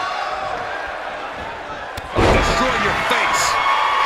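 A body slams down hard onto a wrestling mat.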